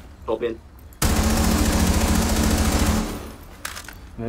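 Rapid gunfire bursts close by.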